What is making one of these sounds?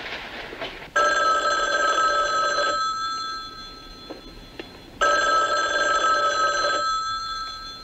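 A telephone rings in loud bursts.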